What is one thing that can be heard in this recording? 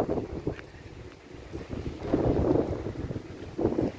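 A bicycle rolls past on wet pavement.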